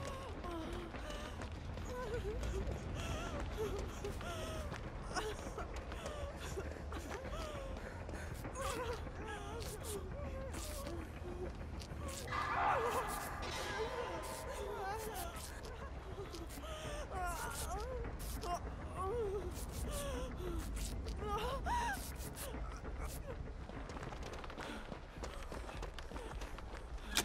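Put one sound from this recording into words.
Footsteps rustle over leaves and dirt.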